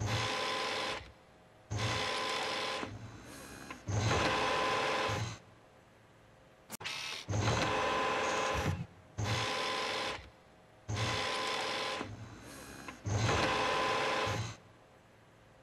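A robotic arm whirs and hums in bursts of motion.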